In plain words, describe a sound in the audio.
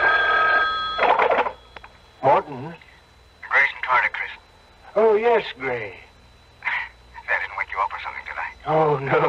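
A man's voice speaks through the crackly loudspeaker of an old radio.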